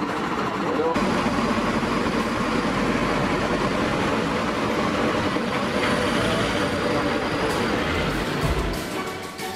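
A fire engine's motor idles nearby.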